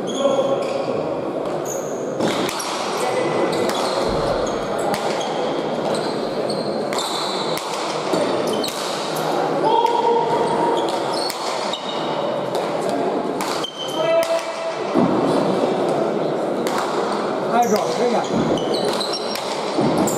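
A ball smacks sharply against a wall and floor, echoing in a large hall.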